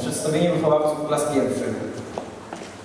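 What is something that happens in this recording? A young man speaks into a microphone in a large hall, announcing with animation.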